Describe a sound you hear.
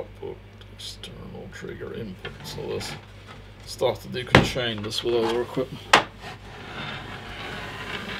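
A heavy metal case thuds and scrapes on a table.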